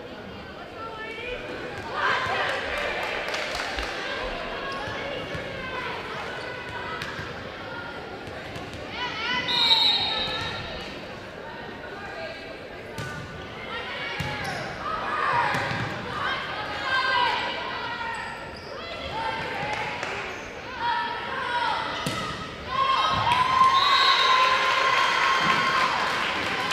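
A crowd cheers and shouts in a large echoing gym.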